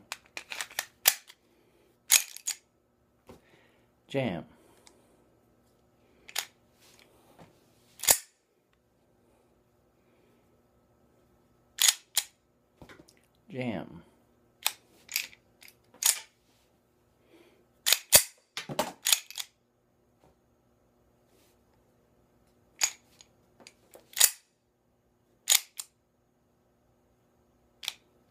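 A pistol slide racks back and snaps forward with sharp metallic clicks.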